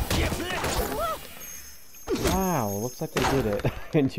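Magic sparkles chime and shimmer.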